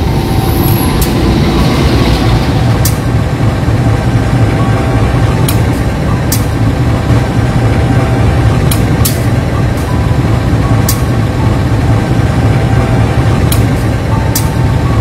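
Train wheels click over rail joints at irregular intervals.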